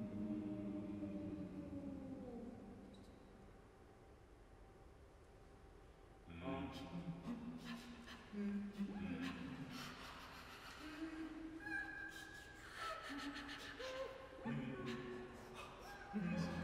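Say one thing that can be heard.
Music plays and rings out in a large, echoing hall.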